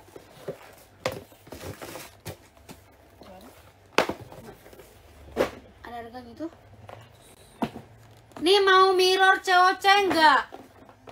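A box rustles and knocks as it is handled.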